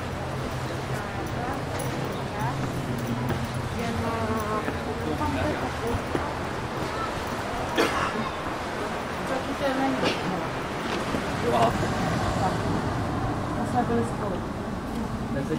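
Men and women murmur nearby as they pass.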